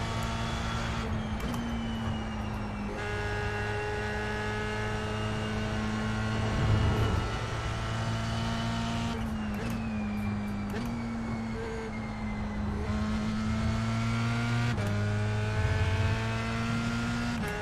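A racing car engine roars at high revs, dropping and rising in pitch as it shifts gears.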